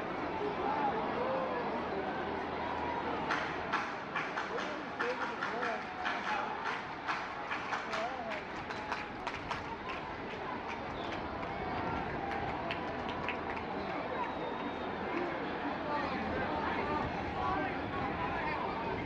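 A large stadium crowd murmurs and cheers outdoors.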